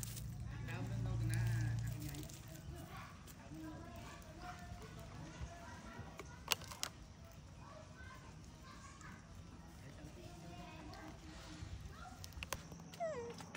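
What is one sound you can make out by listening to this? A monkey tears and scrapes at coconut husk.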